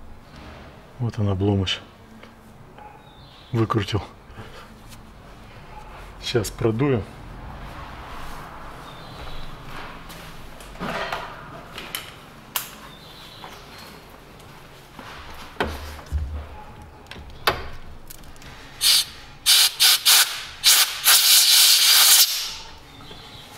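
Plastic engine parts click and rattle as hands handle them.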